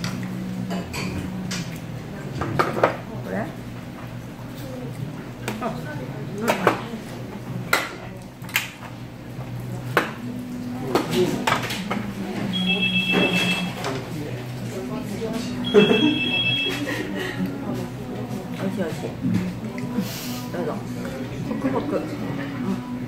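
Chopsticks and utensils clink against dishes.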